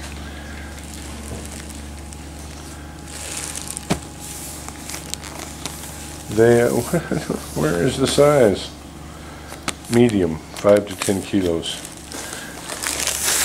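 A plastic pack crinkles as it is handled.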